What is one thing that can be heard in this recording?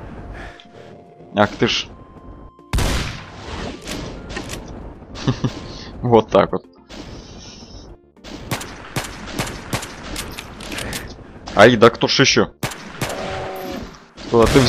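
Pistol and shotgun shots fire in quick bursts.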